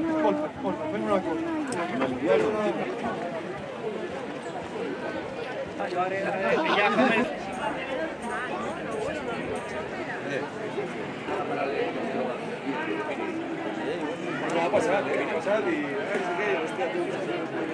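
A crowd of many people chatters outdoors all around.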